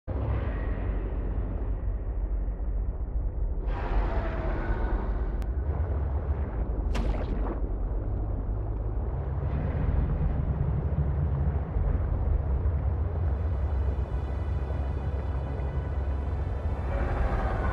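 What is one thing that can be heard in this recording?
A submarine engine hums low and steady underwater.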